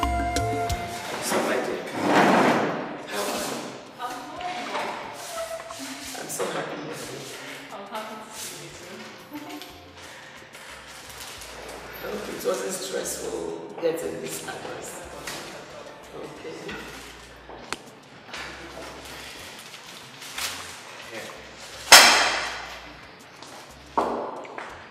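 A second woman laughs and chats nearby.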